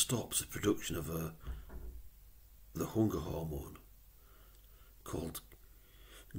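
A middle-aged man speaks calmly and close to a webcam microphone, in short bursts with pauses.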